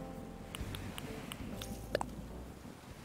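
Short menu blips tick as a cursor moves.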